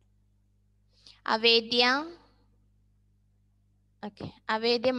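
A young woman speaks in a lively, sing-song way over an online call.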